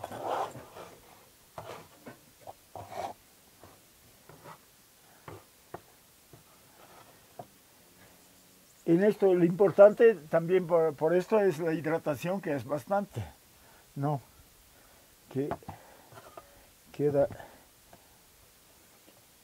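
A metal scraper scrapes across a wooden board.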